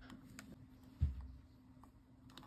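A sticker is pressed down onto a plastic case with a soft tap.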